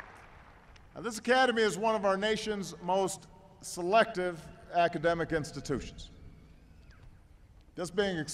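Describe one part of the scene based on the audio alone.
A middle-aged man speaks calmly and firmly into microphones over a loudspeaker system.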